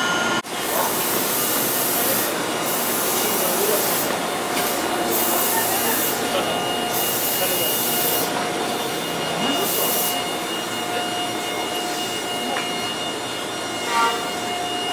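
A steady hiss fills the air outdoors.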